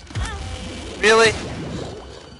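A game monster fires a loud, wailing laser blast.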